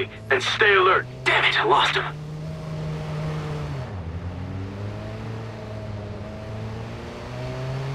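A car engine hums steadily, dipping briefly in pitch and then climbing again.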